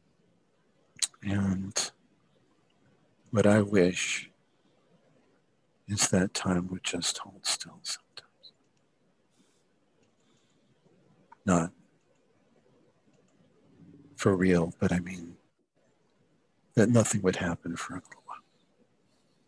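A young man speaks with animation over an online call, in short bursts with pauses.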